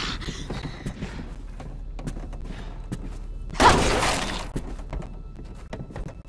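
A heavy blow lands on a body with a dull thud.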